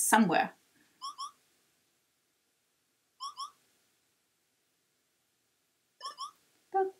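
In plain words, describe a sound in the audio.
Short electronic blips sound in quick pairs.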